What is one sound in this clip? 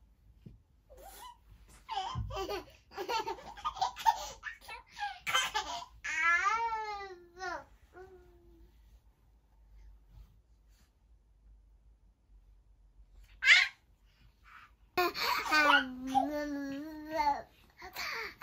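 A toddler babbles and whines.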